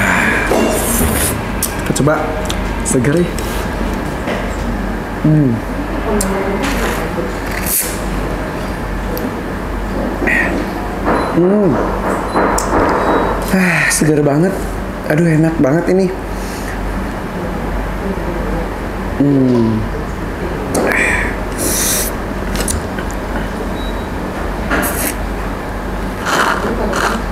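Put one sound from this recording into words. A young man sips a drink loudly through a straw.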